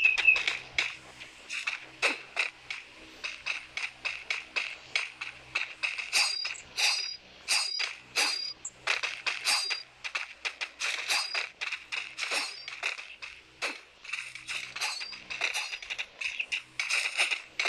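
Sharp shots and hits crack in quick succession.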